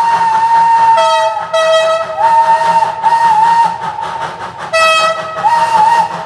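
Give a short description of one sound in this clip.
A train horn blows loudly in several blasts.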